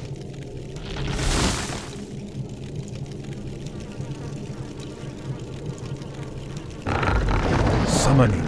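Fire roars in a short whooshing burst.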